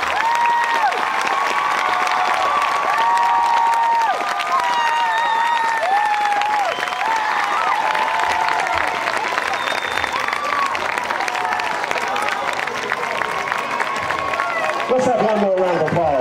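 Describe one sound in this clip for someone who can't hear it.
A marching band plays brass music loudly across an open field outdoors.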